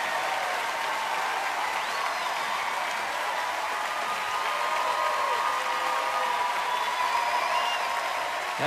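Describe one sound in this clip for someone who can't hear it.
Women in the crowd shriek with excitement.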